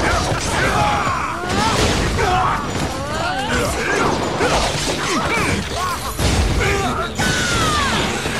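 Blades slash and clang in a fast fight.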